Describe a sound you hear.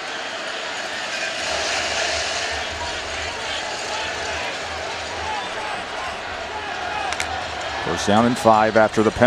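A large stadium crowd roars steadily outdoors.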